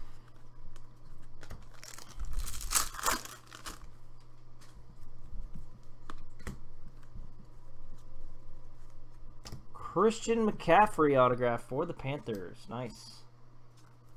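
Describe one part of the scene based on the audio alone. Trading cards slide and tap against each other as they are shuffled.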